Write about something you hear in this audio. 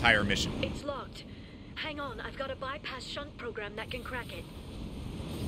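A young woman speaks calmly through a speaker.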